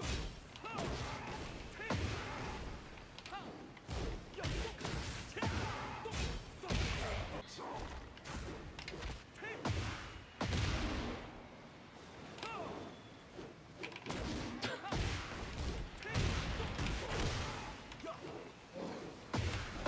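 Punches and kicks land with sharp thuds and cracks.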